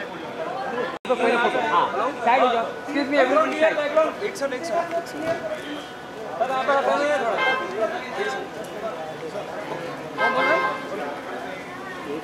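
A crowd of people chatter loudly nearby.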